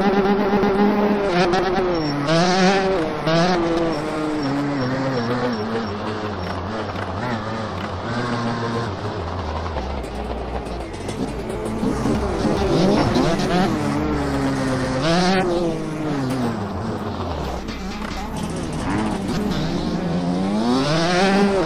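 A motorcycle engine revs and whines, rising and falling in pitch.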